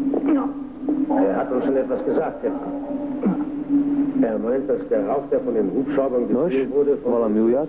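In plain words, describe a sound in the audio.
An adult man speaks calmly.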